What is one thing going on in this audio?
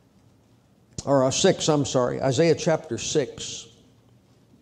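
A middle-aged man speaks calmly into a microphone in a reverberant room.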